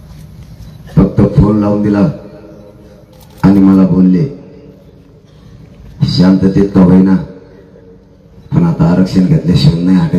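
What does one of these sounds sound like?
A large crowd chants slogans loudly in repeated bursts.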